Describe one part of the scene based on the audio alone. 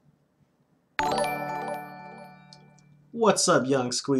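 A bright alert chime rings out and slowly fades.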